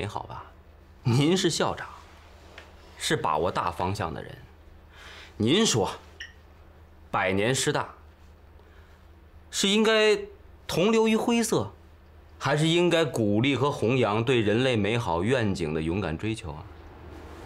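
A younger man speaks with animation, close by, asking questions.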